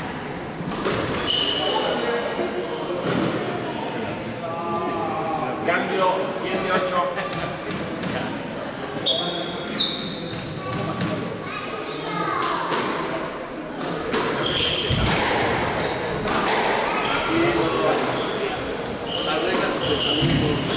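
A squash ball smacks against walls with sharp echoing knocks.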